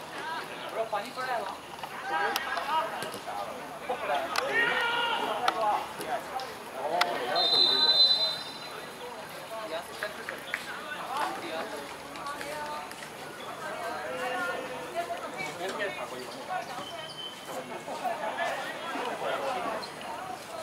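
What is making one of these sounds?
Young men shout and call out across a large open pitch outdoors.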